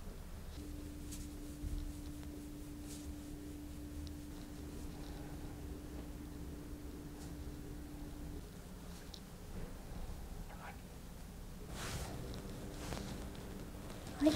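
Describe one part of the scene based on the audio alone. Hands rub softly over a towel.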